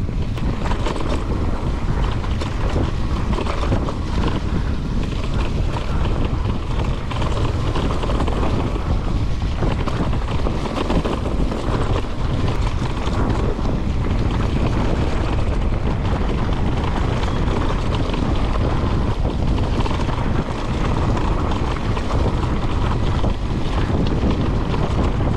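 Wind rushes past a rider moving outdoors.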